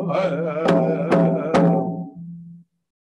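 A hand drum beats steadily.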